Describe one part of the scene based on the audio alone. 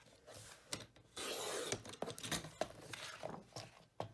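A paper trimmer blade slides along, slicing through paper.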